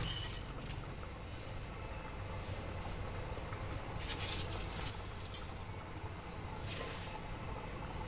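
Liquid bubbles and simmers in a pot.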